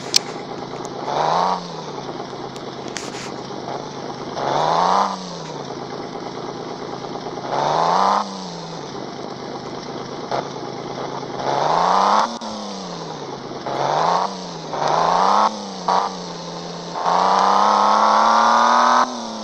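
A car engine revs up and eases off again and again, then holds a high steady whine.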